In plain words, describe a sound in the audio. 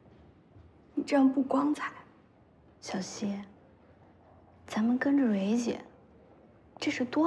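Another young woman answers calmly, close by.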